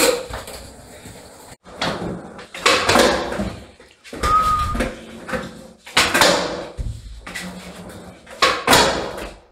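Skateboard wheels roll over a hard floor.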